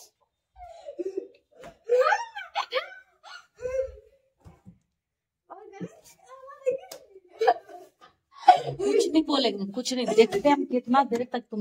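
A boy talks and laughs.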